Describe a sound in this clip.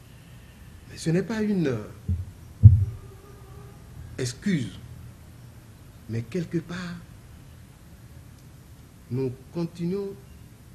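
An elderly man speaks calmly and slowly in short phrases, close to a microphone.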